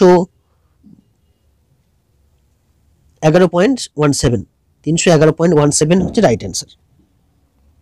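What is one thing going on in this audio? A man speaks calmly and clearly into a close microphone, in short bursts.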